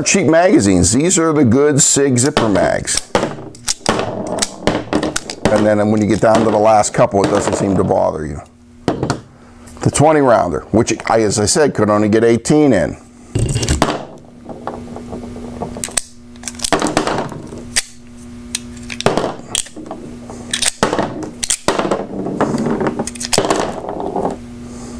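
Cartridges click and clatter onto a table.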